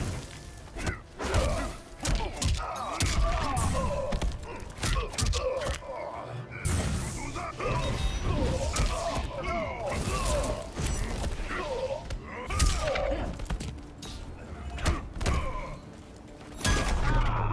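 Heavy punches and kicks land with sharp thuds and cracks, again and again.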